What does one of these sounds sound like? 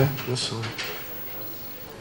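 A man speaks briefly into a microphone in a room.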